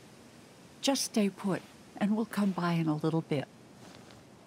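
An elderly woman speaks softly and reassuringly, close by.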